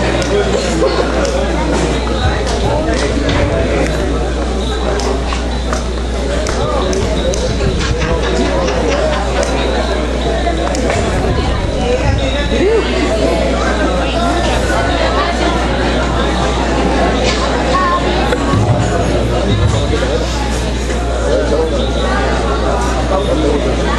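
Musicians play guitars and hand drums in a large echoing hall.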